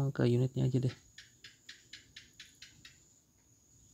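A phone's buttons click in quick small taps.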